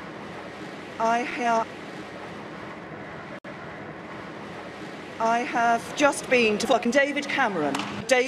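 A middle-aged woman speaks formally into a microphone outdoors.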